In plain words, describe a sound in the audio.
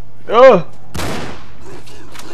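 A gun fires loudly.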